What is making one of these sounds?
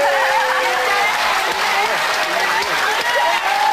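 A young woman laughs loudly into a microphone.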